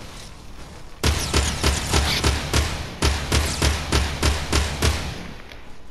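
Rapid gunshots fire one after another in a loud burst.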